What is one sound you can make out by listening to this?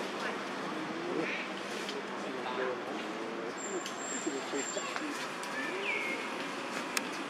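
A bird gives short, curving calls nearby.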